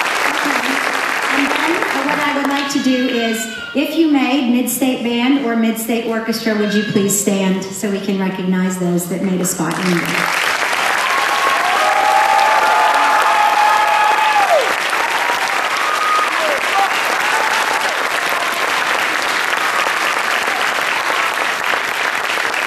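An audience claps and cheers loudly.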